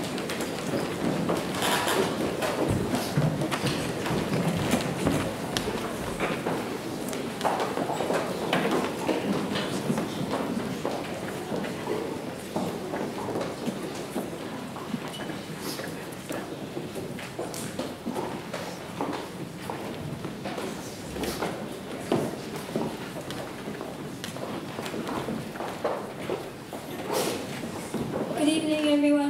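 Many footsteps shuffle and knock on wooden stage risers in a large echoing hall.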